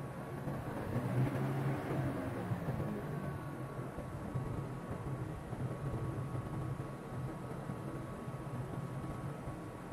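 Aircraft wheels rumble over runway joints.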